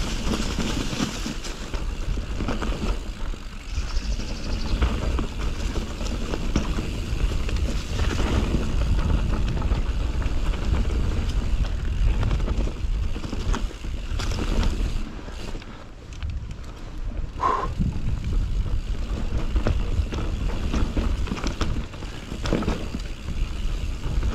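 Wind rumbles loudly past a rider.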